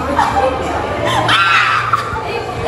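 A young woman shrieks and laughs up close.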